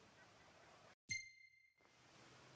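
A short electronic chime rings once.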